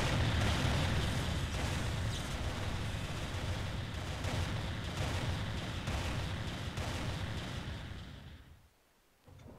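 A loud explosion roars and rumbles, then dies away.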